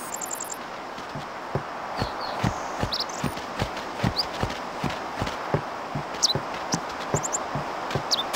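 Footsteps tread quickly on wooden planks and grass.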